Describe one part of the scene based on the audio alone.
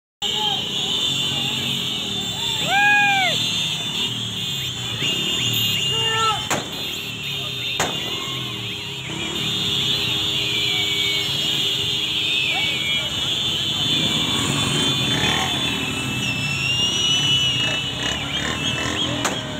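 Many motorcycle engines rumble and rev close by.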